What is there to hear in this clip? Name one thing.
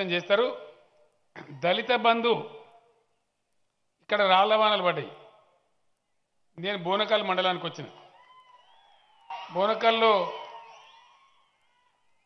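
A man speaks forcefully into a microphone over loudspeakers, in short bursts with pauses, echoing outdoors.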